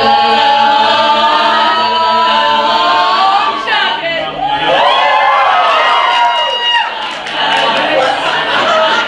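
A young man sings a lead part up close.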